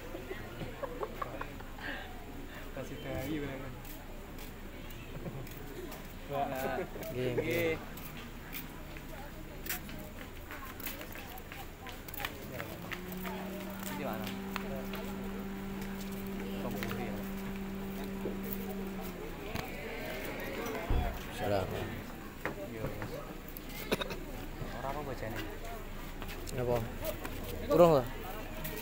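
A crowd of men and women chatter outdoors at a distance.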